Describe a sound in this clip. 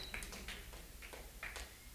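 A woman claps her hands softly.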